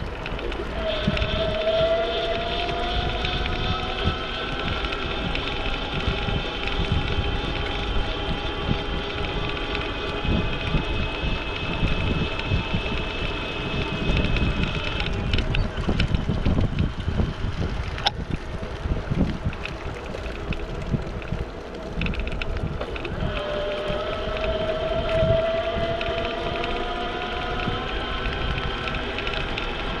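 An electric motor whines steadily, rising slowly in pitch.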